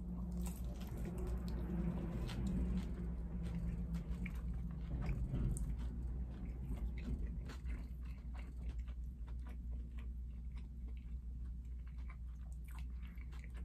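A woman chews noisily with her mouth close by.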